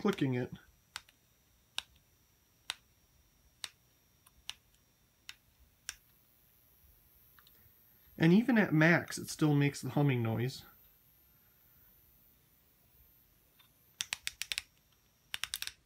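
A lamp switch clicks several times.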